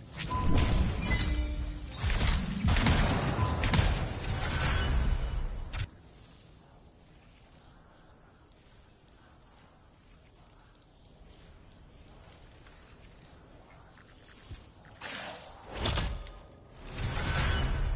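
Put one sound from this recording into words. Weapons fire and blasts boom loudly in a battle.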